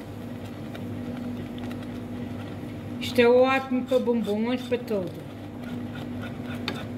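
A whisk scrapes and taps against a pan while stirring thick sauce.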